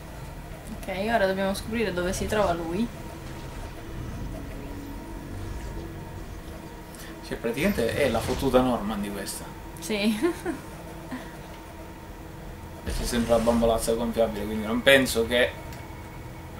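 A young woman talks and laughs, close to a microphone.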